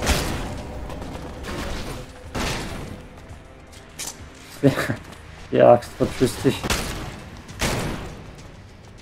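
Weapon blasts and impacts sound from a video game.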